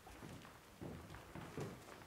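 Bare feet thud softly on a wooden stage.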